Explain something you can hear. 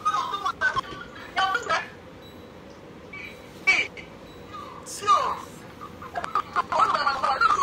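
A woman talks with animation through a phone speaker.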